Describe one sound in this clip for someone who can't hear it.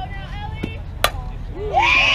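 A bat hits a softball with a sharp crack.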